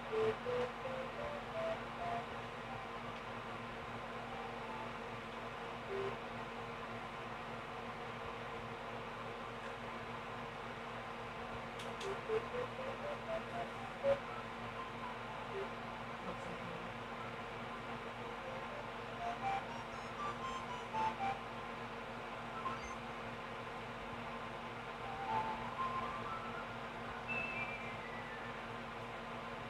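A game's music plays through a television speaker, with rising and falling runs of short notes.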